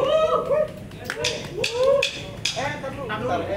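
Drums are struck in sharp hits.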